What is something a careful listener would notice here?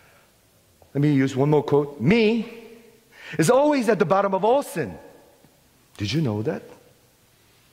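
A man sings loudly and expressively into a microphone in a large echoing hall.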